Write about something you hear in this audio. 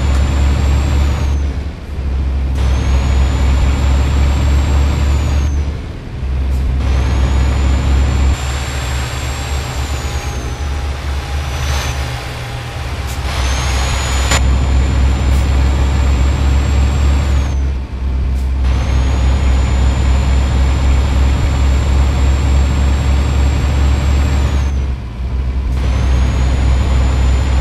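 A heavy truck engine drones steadily, briefly dropping off now and then as gears change.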